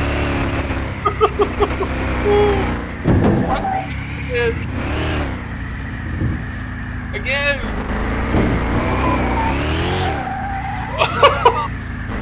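Crashes and thuds sound as the car hits the roadside.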